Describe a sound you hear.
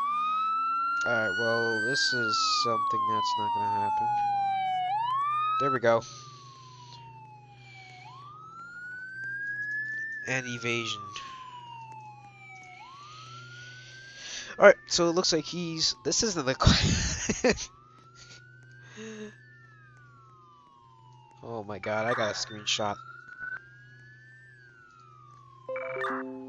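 A police siren wails, rising and falling over and over.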